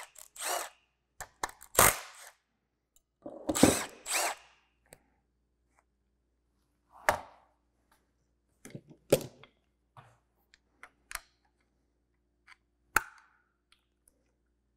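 Metal tools click and clatter against an engine.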